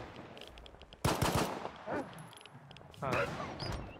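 Pistol shots ring out sharply, one after another.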